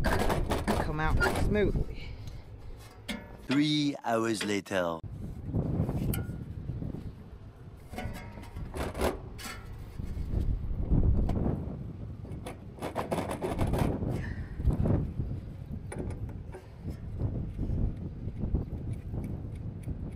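Metal clanks and knocks as a fan is wrestled loose from its shaft.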